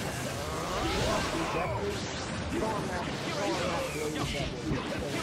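Blows land with heavy thuds in a fight.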